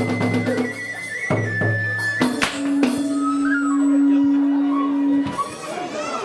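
A bamboo flute plays high, held notes.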